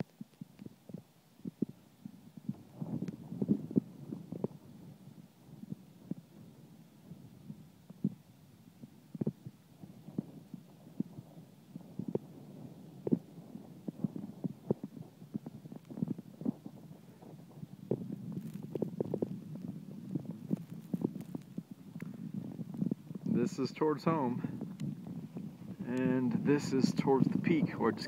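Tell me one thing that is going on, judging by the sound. Wind gusts and buffets outdoors on an open mountainside.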